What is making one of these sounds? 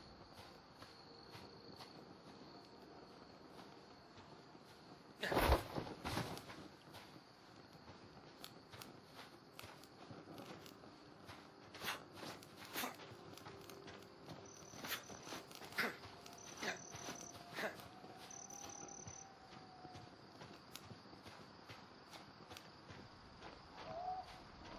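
A torch fire crackles steadily.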